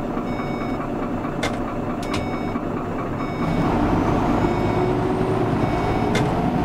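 A bus engine hums steadily and grows louder as the bus speeds up.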